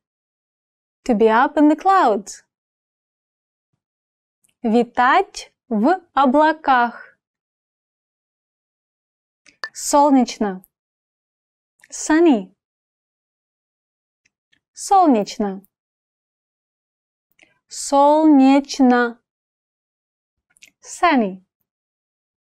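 A young woman speaks clearly and slowly into a close microphone, pausing between short phrases.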